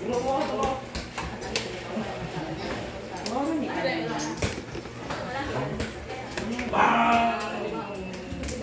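Several young people talk and chatter nearby.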